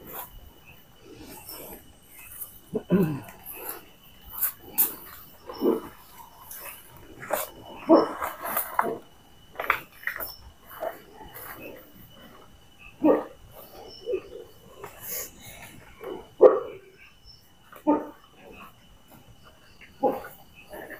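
Insects chirp steadily outdoors at night.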